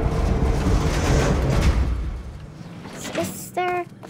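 Heavy elevator doors slide open.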